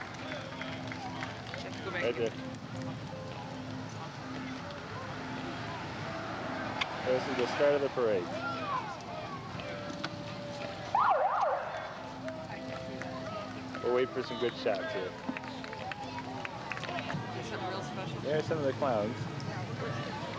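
A crowd of spectators chatters along a street outdoors.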